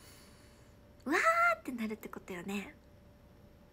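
A young woman speaks and laughs brightly, close to the microphone.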